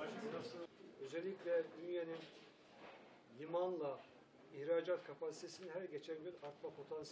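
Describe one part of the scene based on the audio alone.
A man speaks calmly into a microphone at close range.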